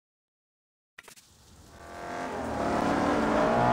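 A car engine roars louder and louder as a car speeds along a wet road.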